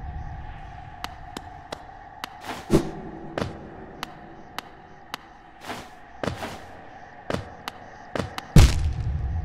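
Light footsteps patter on stone.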